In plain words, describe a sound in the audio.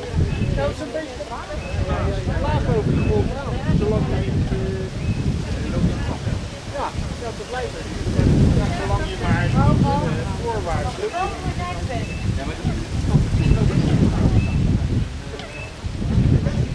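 Several young men talk casually nearby outdoors.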